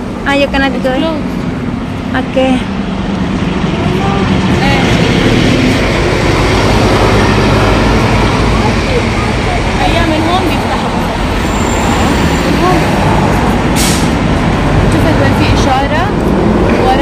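Traffic rumbles past close by on a busy road.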